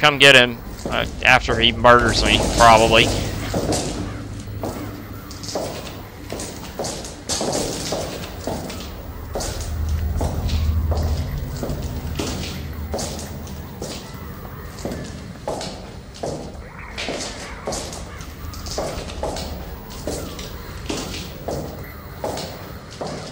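Footsteps crunch over loose debris.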